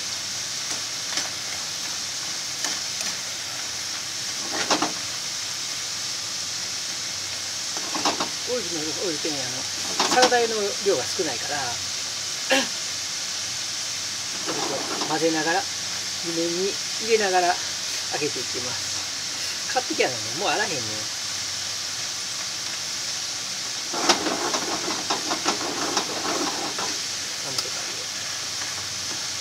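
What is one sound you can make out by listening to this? Hot oil sizzles steadily in a pan.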